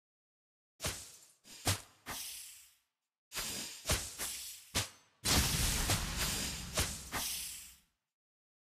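Sharp swooshing hits and magic blasts burst again and again in a fast game battle.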